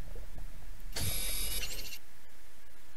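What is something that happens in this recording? A scanning device buzzes briefly.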